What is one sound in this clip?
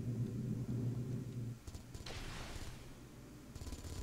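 Guns fire in quick bursts.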